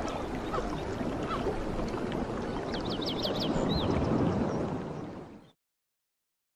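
A small waterfall splashes and trickles over rocks.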